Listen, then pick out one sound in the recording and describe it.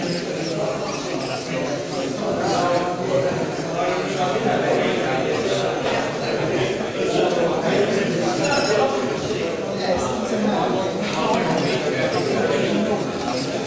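Small electric motors whir as a metal construction-kit robot moves its arm.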